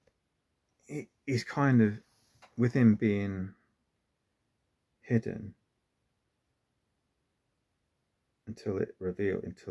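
A man speaks calmly and close up, with pauses.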